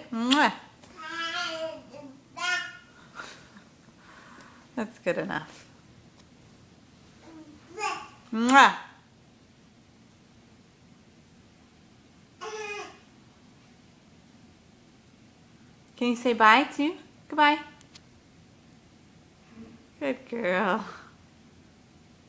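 A baby babbles and squeals loudly, close by.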